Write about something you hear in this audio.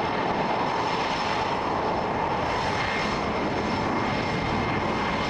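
A jet engine roars loudly and steadily as a fighter jet taxis past, with a high whine.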